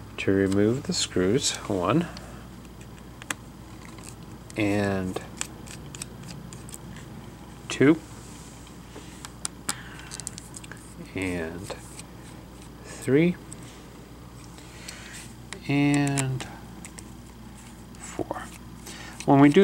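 A small screwdriver taps and scrapes against plastic.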